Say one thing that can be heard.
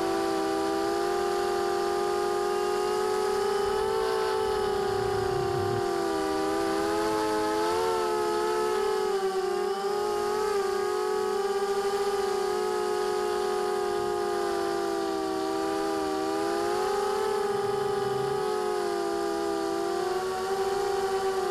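A drone's propellers whine steadily, rising and falling in pitch.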